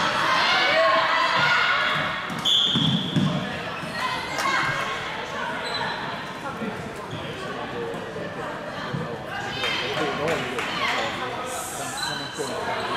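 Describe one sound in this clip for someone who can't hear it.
Young players shout and call to each other across an echoing sports hall.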